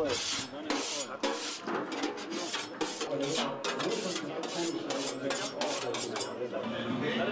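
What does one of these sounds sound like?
A metal container clanks against a steel kettle.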